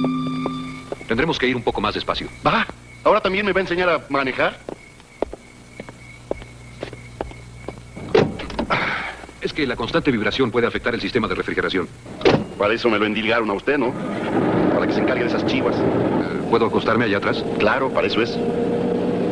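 An adult man speaks with animation to another man.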